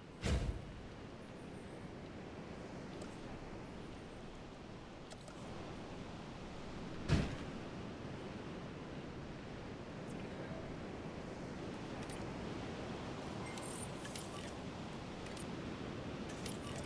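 Soft interface clicks and blips sound now and then.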